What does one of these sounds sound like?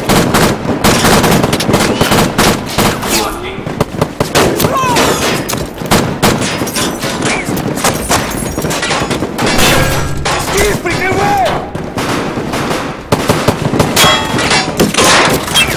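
Rifles fire in rapid, sharp bursts.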